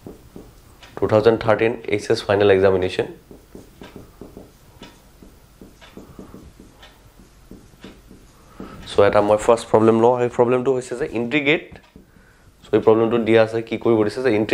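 A man talks calmly close by, with pauses.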